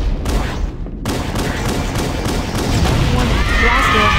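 Gunfire from a pistol cracks in single shots.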